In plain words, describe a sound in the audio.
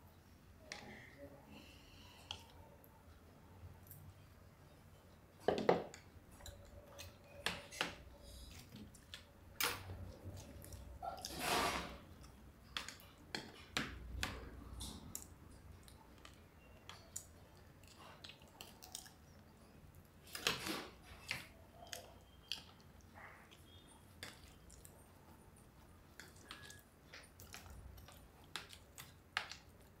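Spoons clink and scrape against plates.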